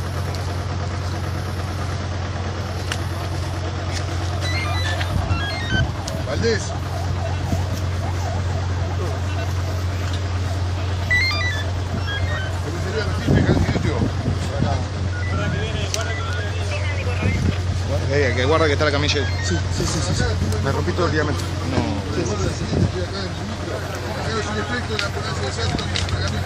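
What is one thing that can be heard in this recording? Several men talk and call out to one another outdoors at night.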